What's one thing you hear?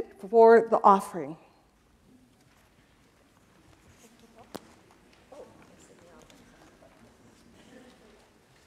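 An adult speaks through a microphone in a large echoing room.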